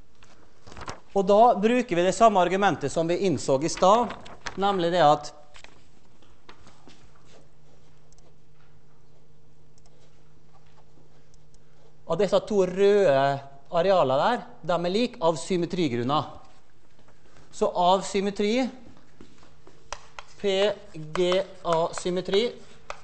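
A man lectures through a microphone in a large echoing hall, speaking calmly in bursts with pauses.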